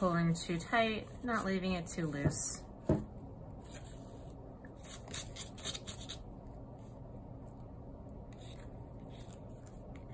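Paper strips rustle and scrape softly under fingers.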